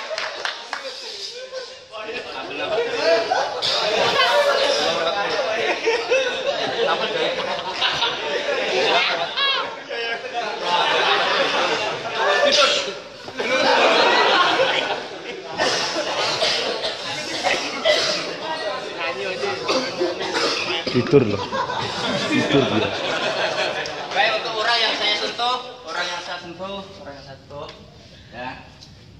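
Several young men talk and shout loudly nearby in an echoing room.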